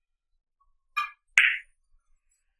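A cue tip strikes a billiard ball with a sharp tap.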